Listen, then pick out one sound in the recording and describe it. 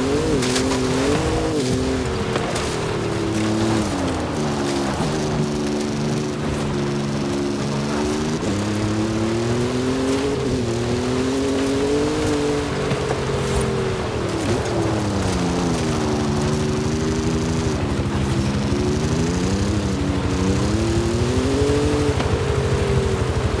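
Tyres crunch over loose dirt.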